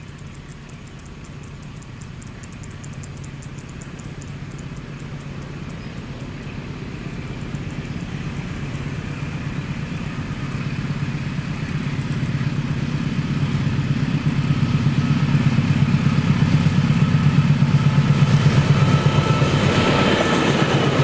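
A diesel locomotive engine rumbles as it approaches, growing steadily louder.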